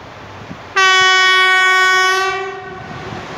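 A train horn sounds a long steady blast in the distance.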